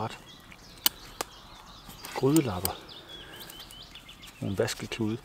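Metal cutlery clinks sharply.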